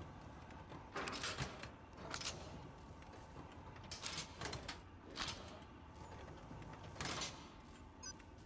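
Slot machine reels whir and clunk to a stop one after another.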